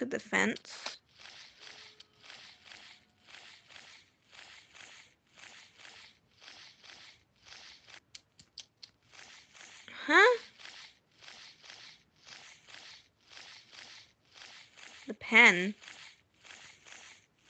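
Large wings flap in a steady rhythm.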